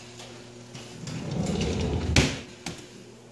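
A drawer rumbles as it slides shut with a thud.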